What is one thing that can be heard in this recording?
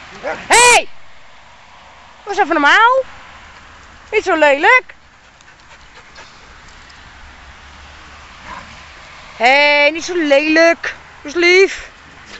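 Dogs bark and yelp nearby.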